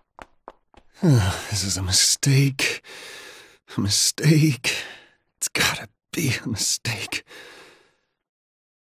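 A young man speaks anxiously to himself, close by.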